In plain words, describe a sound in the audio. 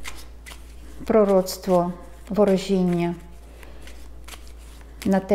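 Playing cards rustle and click in a woman's hands.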